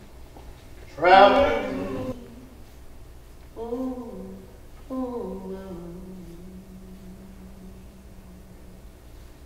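A woman sings in long, drawn-out phrases.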